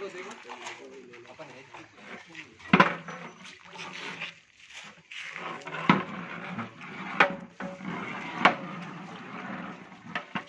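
A metal ladle stirs and knocks against a large metal pot.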